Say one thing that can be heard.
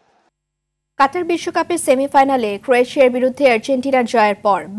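A woman reads out calmly into a microphone.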